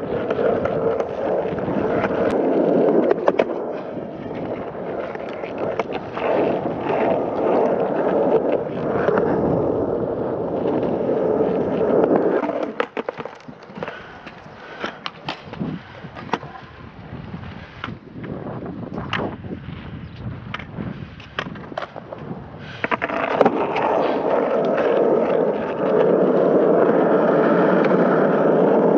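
Skateboard wheels roll and rumble over rough concrete.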